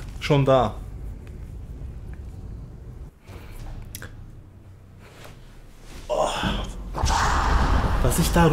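A young man speaks briefly and animatedly, close to a microphone.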